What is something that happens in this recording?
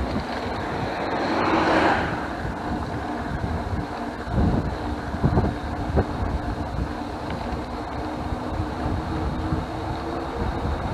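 Bicycle tyres hum on a paved road.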